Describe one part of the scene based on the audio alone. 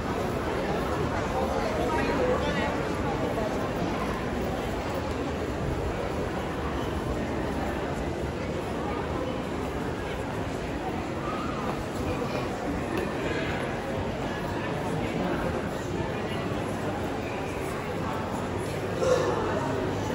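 Footsteps shuffle on a hard floor.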